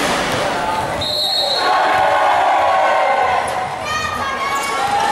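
A crowd of young people cheers and shouts.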